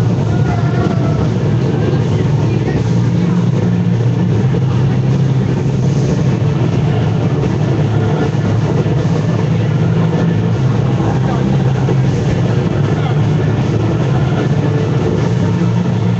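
A film soundtrack plays loudly through outdoor loudspeakers.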